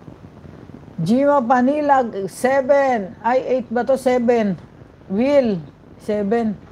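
A middle-aged woman sings loudly into a close microphone.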